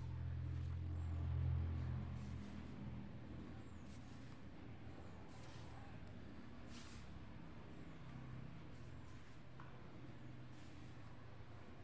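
A pencil scratches softly along a ruler on paper.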